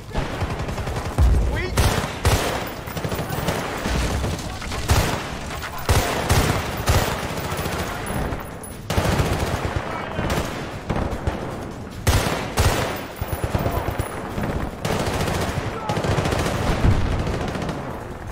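A rifle fires in rapid bursts, with loud sharp cracks.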